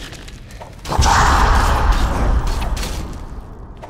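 A blade hits a shield with a loud clang.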